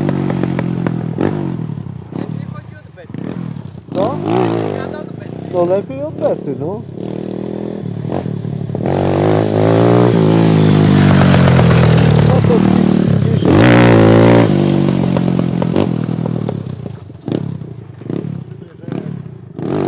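A motorcycle engine revs up and down, rising and falling in pitch.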